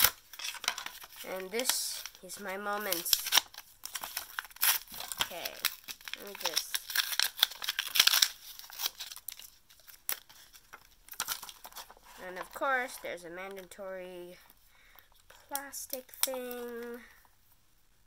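Small plastic pieces click and rattle in a young girl's hands.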